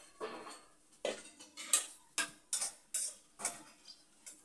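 A metal ladle clatters and scrapes.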